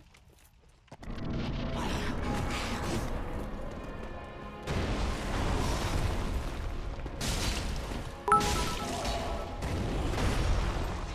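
Swords clash and ring out in a fight.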